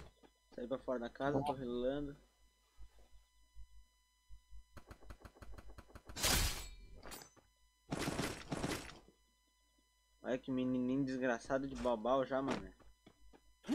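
A young man speaks with animation close to a headset microphone.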